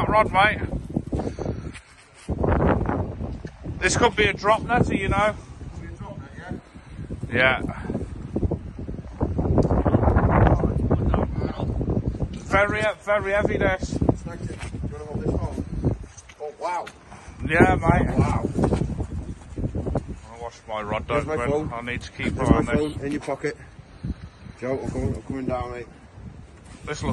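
A man talks with animation close by, outdoors in wind.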